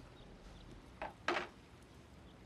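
A plate clinks down onto a wooden table.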